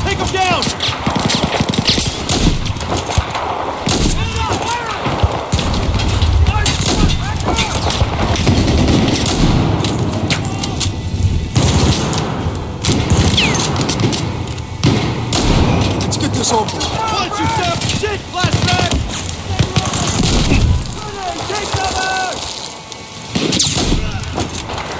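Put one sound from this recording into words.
A rifle fires loud, sharp single shots with echoing cracks.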